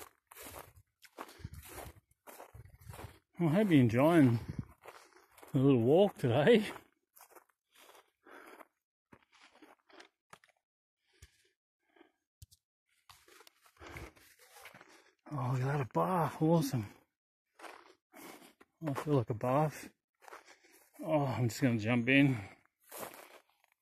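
Footsteps crunch on dry grass and dirt.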